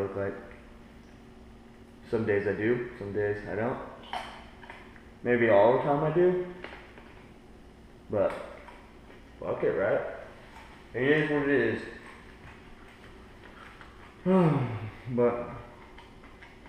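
A young man talks casually and close by, in bursts with pauses.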